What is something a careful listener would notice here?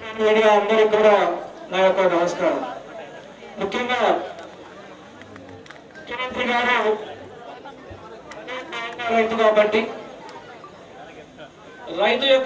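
A middle-aged man sings with feeling into a microphone, heard through loudspeakers, in phrases with pauses between them.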